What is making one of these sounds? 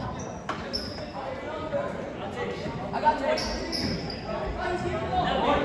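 Voices of a crowd chatter in a large echoing gym.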